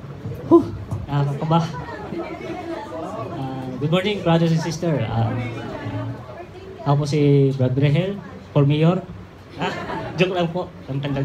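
A man speaks at a lectern through a microphone and loudspeakers in an echoing hall.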